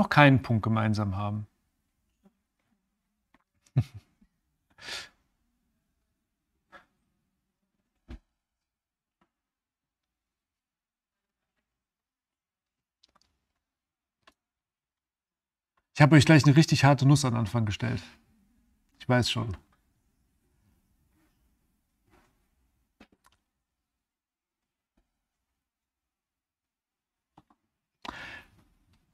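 A middle-aged man speaks close to a microphone in short bursts with long pauses.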